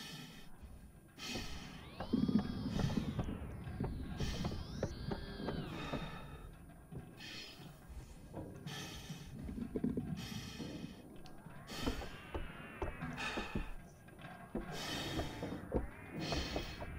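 Mechanical dials click and whir as they turn.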